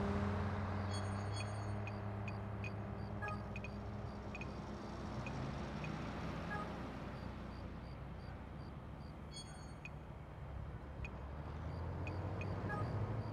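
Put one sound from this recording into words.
Menu clicks tick softly and briefly.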